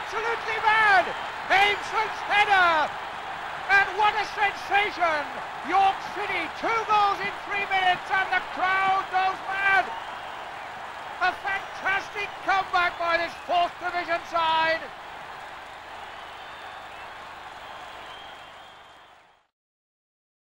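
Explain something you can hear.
A large crowd roars and cheers, then fades away.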